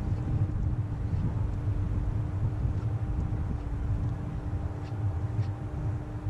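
A fishing reel clicks as it is cranked.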